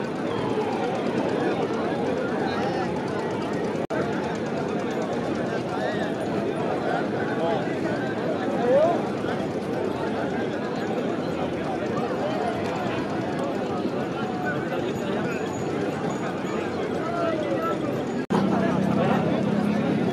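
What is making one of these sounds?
A large outdoor crowd of men shouts and cheers loudly.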